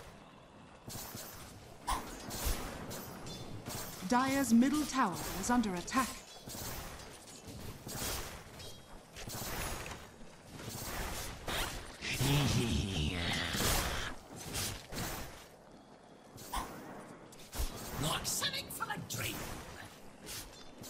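Game spell effects crackle and clash.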